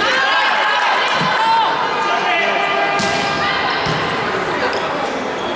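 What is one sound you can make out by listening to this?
Young women shout and call out across a large echoing hall.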